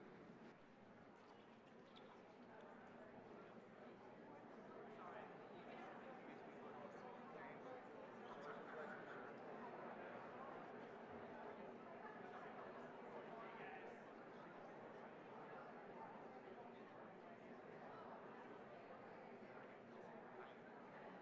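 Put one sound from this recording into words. Many people chat and greet each other in an echoing hall.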